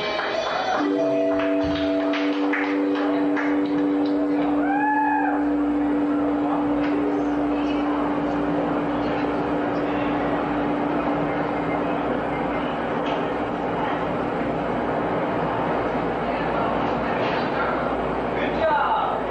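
Drums and cymbals crash and pound.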